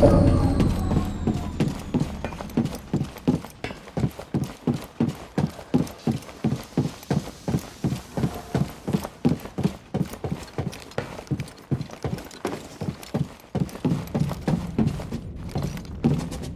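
Quick footsteps run across a metal floor.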